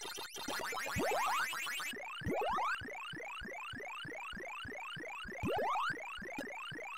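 Quick electronic rising zaps sound in an arcade game.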